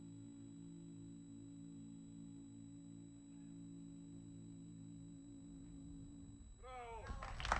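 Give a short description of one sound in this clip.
A men's choir sings a low, steady, sustained chord through microphones.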